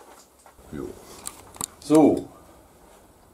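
A man speaks briefly and calmly, close by.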